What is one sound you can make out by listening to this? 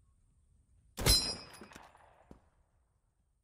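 A rifle fires one loud shot that rings out briefly.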